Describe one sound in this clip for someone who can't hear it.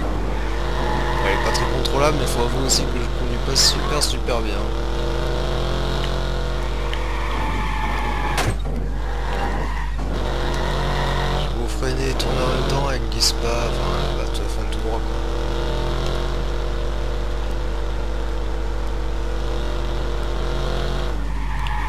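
A car engine hums and revs steadily as the car drives.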